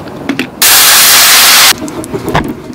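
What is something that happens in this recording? Liquid pours into a hot pan and sizzles loudly.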